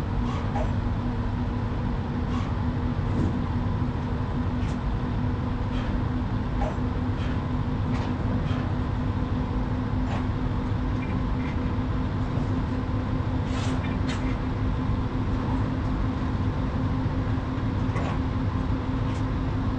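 A heavy truck engine drones steadily as the truck drives along.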